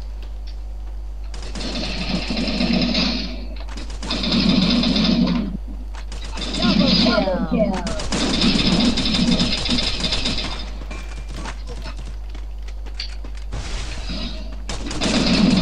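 Keys on a keyboard click rapidly.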